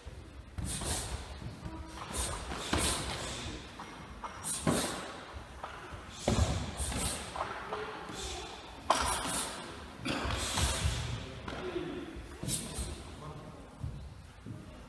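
Punches and kicks thud against pads in a large echoing hall.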